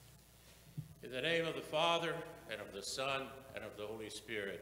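A man speaks into a microphone in a reverberant hall.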